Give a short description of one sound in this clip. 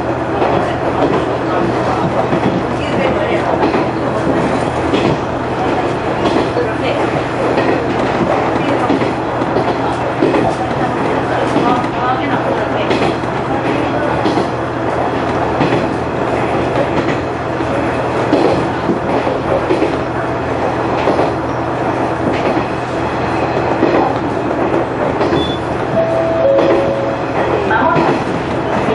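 A train's diesel engine rumbles steadily from inside the cab.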